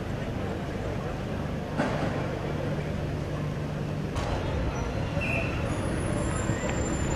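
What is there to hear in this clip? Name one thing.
A crowd of men murmurs outdoors.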